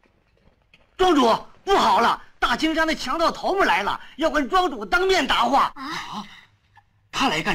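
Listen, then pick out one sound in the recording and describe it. An elderly man speaks urgently and loudly.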